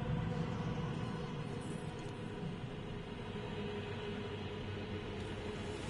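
A shimmering whoosh sounds as a figure vanishes in a flash of light.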